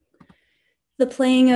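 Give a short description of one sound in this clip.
A woman speaks briefly, close to a microphone.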